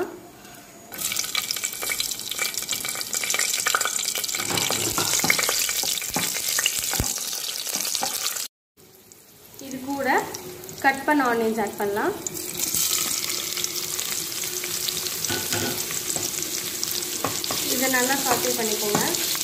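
Hot oil sizzles and crackles in a pot.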